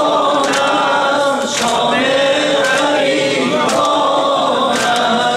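A crowd of women chants together loudly in an echoing hall.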